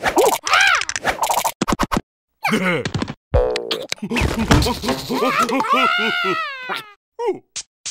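A cartoon creature laughs loudly in a high, squeaky voice.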